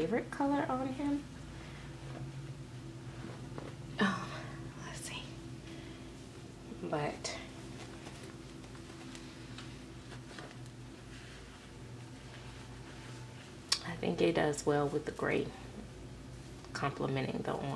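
Soft fabric rustles as a baby is dressed.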